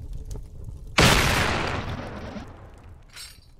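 A loud explosion booms and roars, then fades.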